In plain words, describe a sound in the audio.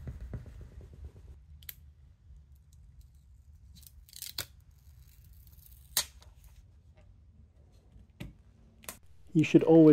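Light clicks and taps sound as a phone battery is pressed into place.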